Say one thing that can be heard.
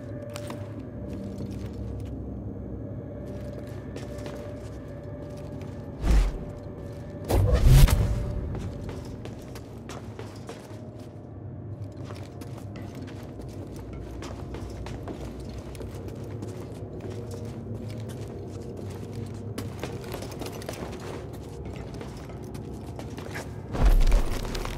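Footsteps thud and clang on metal walkways.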